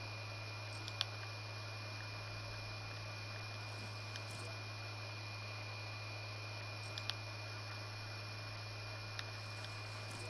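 A game menu gives short clicks.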